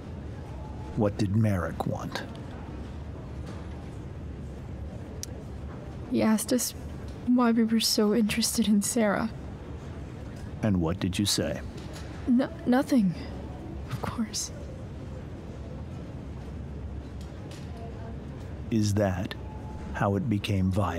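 A man speaks in a calm, coaxing voice.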